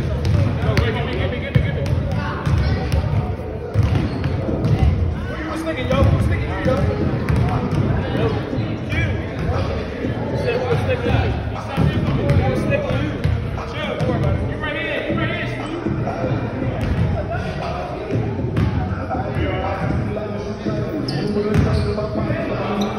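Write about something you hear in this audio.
Young men talk and call out across the gym.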